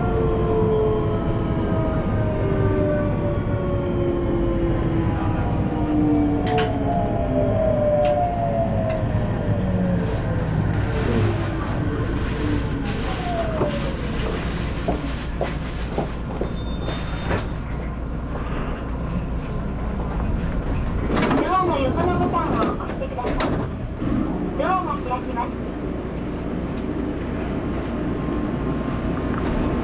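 A train rumbles low along the tracks and then idles.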